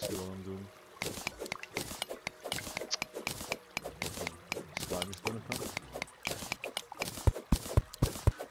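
A pickaxe chips at stone with rapid, repeated knocks.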